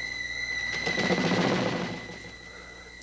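A woman sits down on a bed with a soft rustle.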